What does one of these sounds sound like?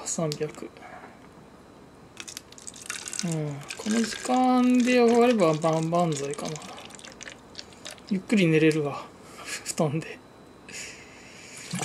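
Water pours from a plastic bottle into a glass.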